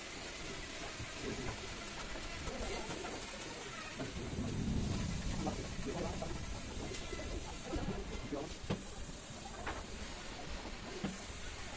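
A wooden cabinet door knocks and clicks as it is handled.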